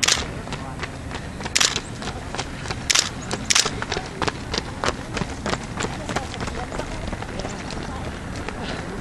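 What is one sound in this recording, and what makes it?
Running shoes patter on asphalt as runners pass close by.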